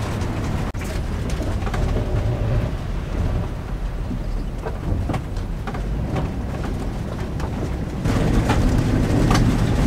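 Tyres crunch over gravel and water.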